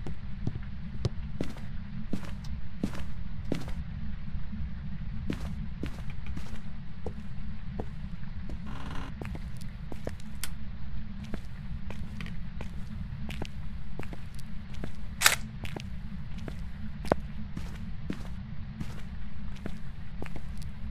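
Footsteps thud steadily across hard floors.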